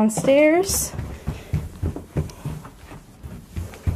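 Footsteps thud on carpeted stairs.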